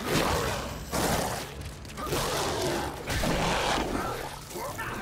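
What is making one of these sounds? A heavy weapon cuts and blasts through flesh in wet, crunching bursts.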